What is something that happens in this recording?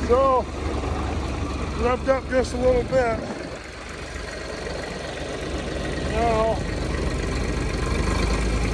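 A diesel engine hums steadily nearby.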